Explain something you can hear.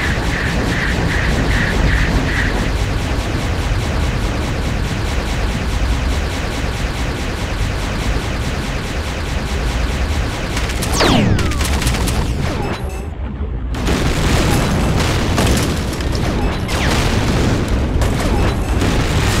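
Laser blasts zap and crackle rapidly.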